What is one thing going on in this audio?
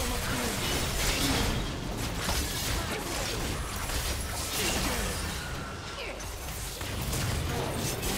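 Magic spell effects crackle and burst in rapid succession.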